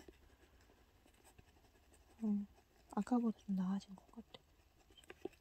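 An oil pastel scrapes softly across paper.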